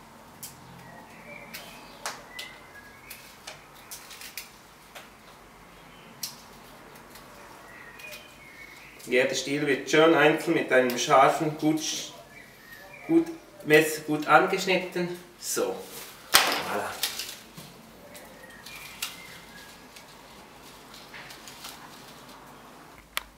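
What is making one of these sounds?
Flower stems rustle and snap softly as they are bound.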